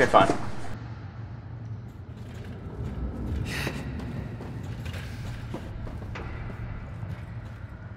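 Footsteps clang on metal grating stairs.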